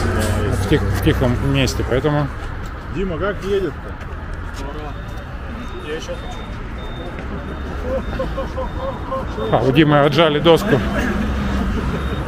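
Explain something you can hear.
Young men talk casually nearby, outdoors.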